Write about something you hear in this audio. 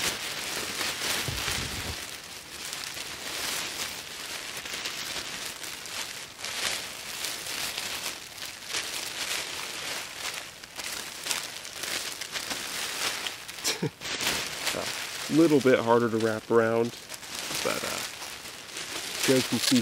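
A foil blanket crinkles and rustles loudly.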